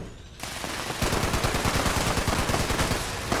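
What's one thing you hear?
A heavy gun fires in a rapid, roaring burst.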